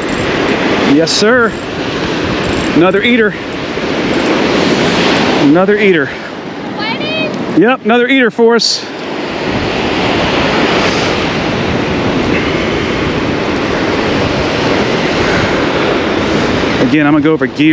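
Waves wash and break steadily on the shore.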